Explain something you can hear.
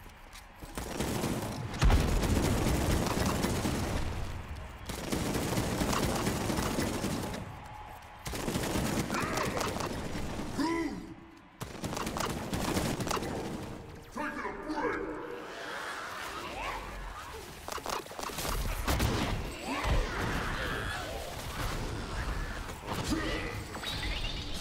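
Gunfire and explosions boom in quick bursts.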